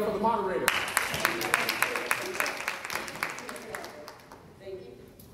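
An audience applauds and then the applause fades out.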